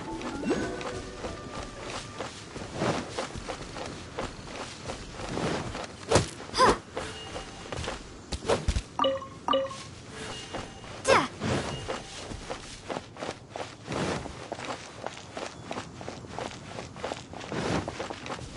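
Footsteps swish through grass and patter on a dirt path.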